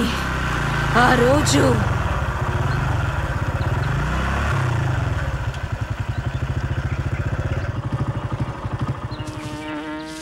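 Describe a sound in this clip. A motorbike engine putters along.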